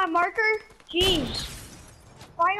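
A sniper rifle fires a single loud, sharp shot.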